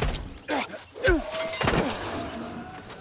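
A sword clashes against a shield with sharp ringing hits.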